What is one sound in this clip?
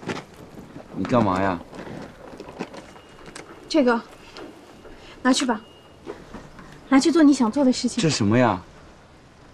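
A young man speaks in a pleading, upset voice close by.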